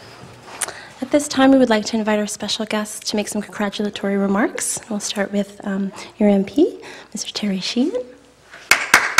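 A woman speaks clearly through a microphone in a large room.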